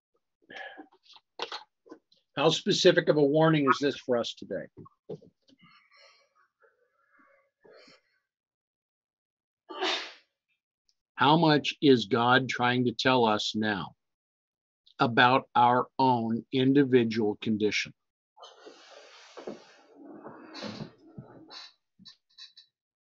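An elderly man speaks calmly and closely into a microphone, in bursts with pauses.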